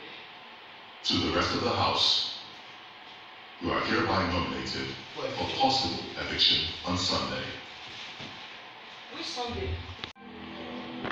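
A man talks, heard faintly through a television speaker in a room.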